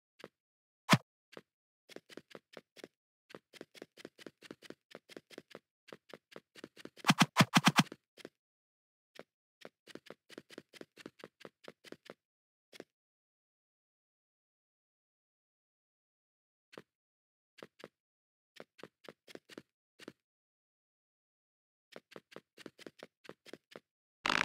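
Quick footsteps tap on blocks as a game character runs.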